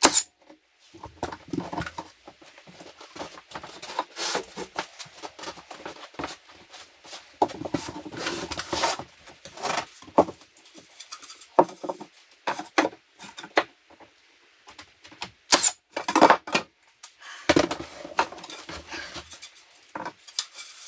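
Wooden boards knock and rub against each other.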